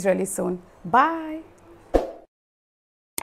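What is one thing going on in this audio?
A young woman speaks with animation close to a microphone.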